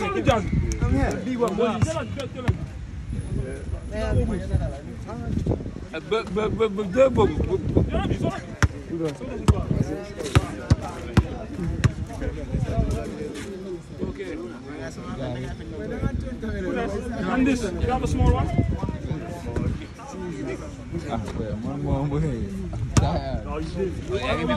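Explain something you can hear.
A crowd of young men chatters and calls out around him.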